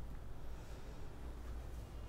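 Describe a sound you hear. Silk fabric rustles softly as a hand lifts and turns it.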